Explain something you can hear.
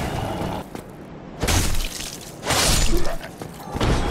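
A sword strikes a skeleton with sharp clangs.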